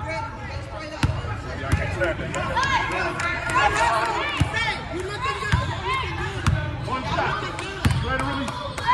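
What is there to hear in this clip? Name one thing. A basketball bounces with hollow thuds on a wooden floor.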